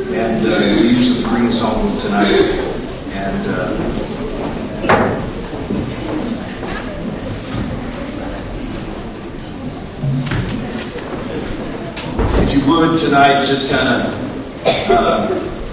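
A man speaks through a microphone in a large, slightly echoing room.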